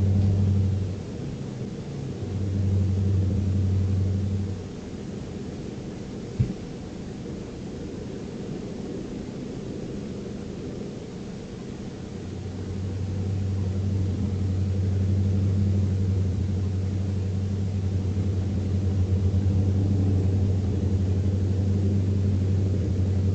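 A truck engine drones steadily, swelling and easing.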